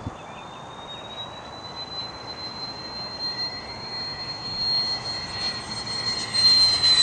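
A jet engine whines high overhead, growing louder as the aircraft approaches.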